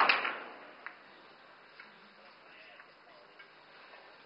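Billiard balls click together on a table.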